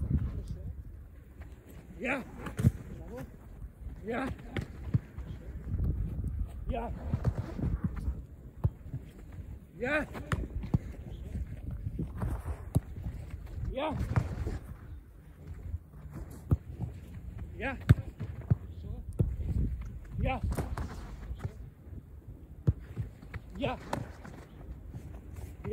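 A football thuds as a goalkeeper catches and blocks it.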